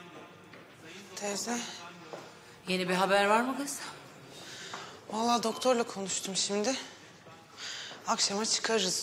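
A middle-aged woman speaks with emotion nearby.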